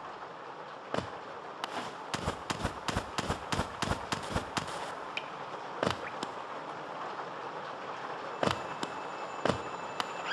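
Small footsteps tap quickly on a hard floor.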